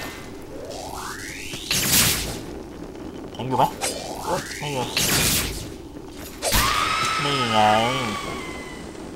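A blade swings through the air with sharp rising whooshes and bursts.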